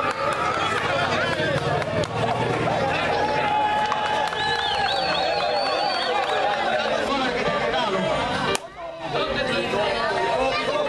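Several men shout and call out across an outdoor ball field.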